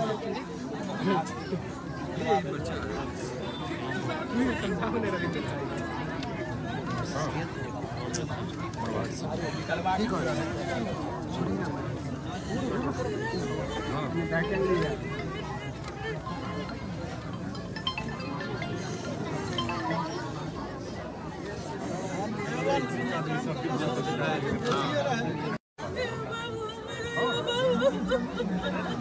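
A crowd of men murmurs and talks nearby.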